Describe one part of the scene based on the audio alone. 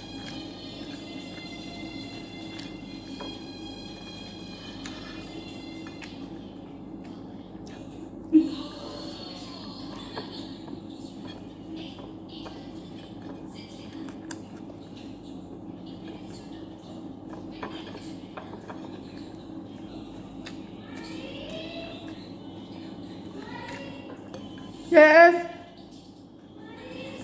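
A woman chews food with her mouth close by.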